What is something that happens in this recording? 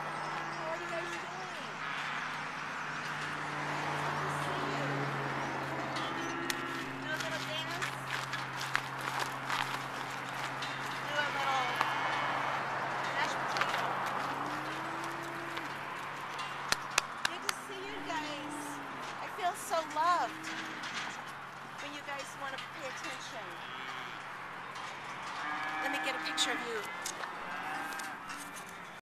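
Several cows moo and low close by.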